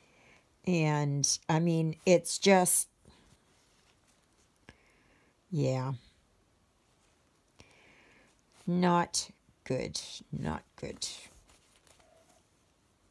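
Thread rasps softly as it is pulled through stiff canvas.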